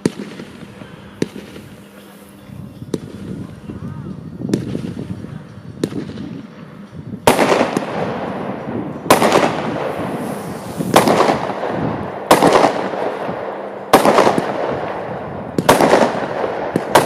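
Firework sparks crackle and fizz.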